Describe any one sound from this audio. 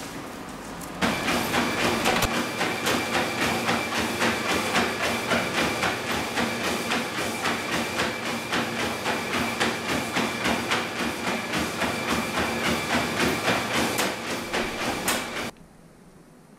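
A treadmill motor whirs steadily.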